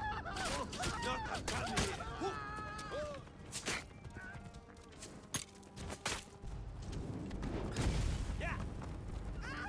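Horses gallop across rough ground.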